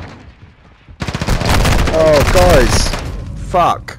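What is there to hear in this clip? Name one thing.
Automatic gunfire rattles in bursts.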